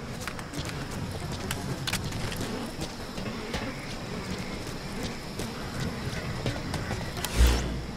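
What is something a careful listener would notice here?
Footsteps run quickly over dusty ground.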